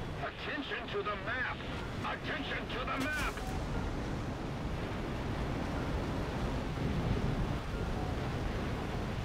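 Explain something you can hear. A jet fighter's engine roars.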